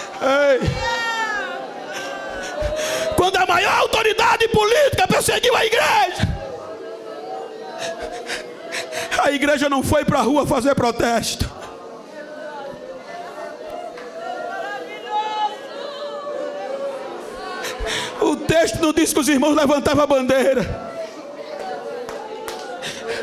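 A crowd murmurs and prays aloud.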